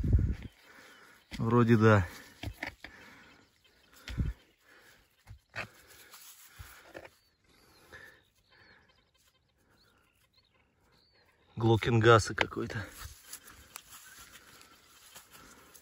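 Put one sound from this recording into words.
A gloved hand rubs soil off a glass bottle.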